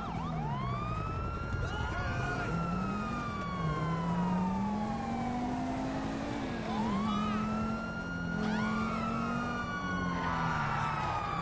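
A car engine revs and roars as the car speeds along.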